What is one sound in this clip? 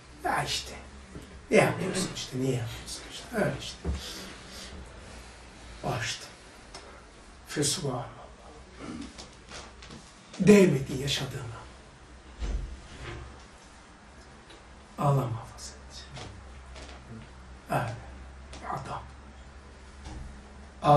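An elderly man speaks calmly and slowly into a nearby microphone, with pauses.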